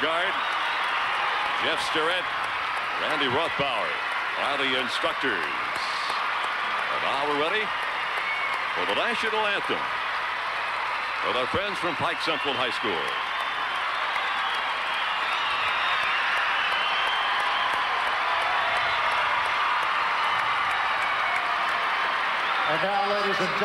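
A large crowd murmurs and chatters in a big echoing hall.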